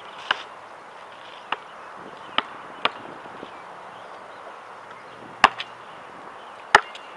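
A basketball bounces on hard pavement with sharp thumps.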